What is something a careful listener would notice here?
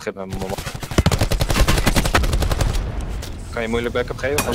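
An automatic rifle fires rapidly.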